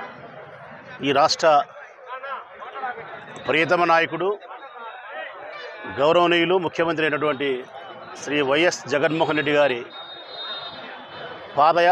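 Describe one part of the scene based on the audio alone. A crowd shouts slogans loudly in unison.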